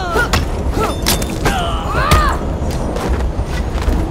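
Heavy punches land in a brawl.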